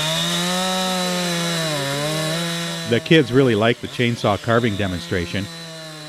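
A chainsaw engine roars and revs up and down as it cuts into wood.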